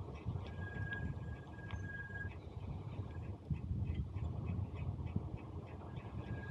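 Bicycle tyres hum on smooth asphalt.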